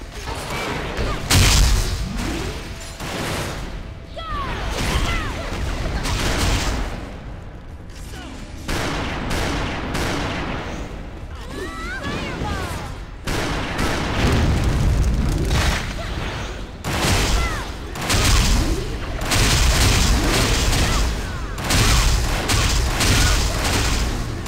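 Game weapons clash and strike in quick bursts.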